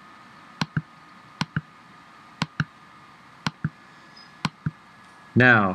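A computer mouse clicks in quick pairs.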